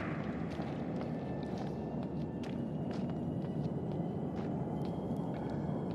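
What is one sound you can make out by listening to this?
Footsteps scuff on rocky ground.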